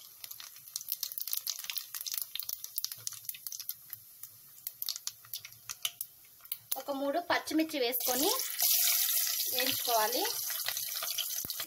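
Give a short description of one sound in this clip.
Spices crackle and pop in hot oil.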